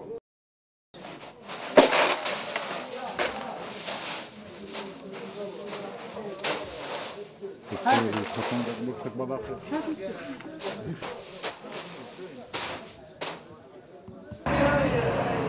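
Footsteps crunch on loose, gritty ground.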